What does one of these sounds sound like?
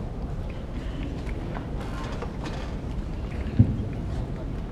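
A group of people rise to their feet with a shuffle and a thump.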